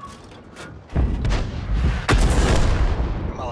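A shell explodes with a loud blast.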